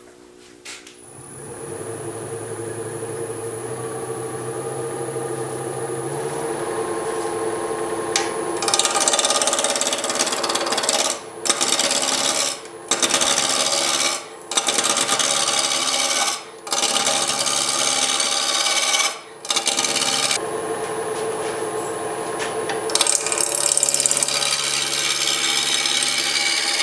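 A lathe motor starts and hums steadily.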